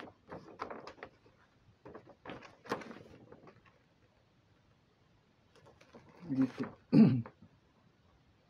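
A paper poster rustles and crinkles as it is unrolled.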